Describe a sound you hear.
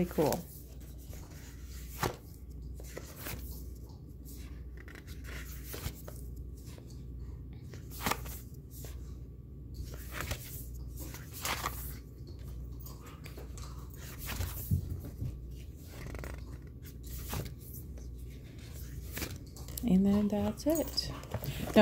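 Stiff paper pages rustle and flap as they are turned one by one.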